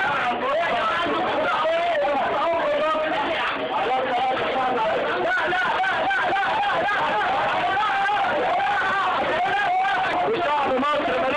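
A crowd of men chants and shouts loudly all at once, close by.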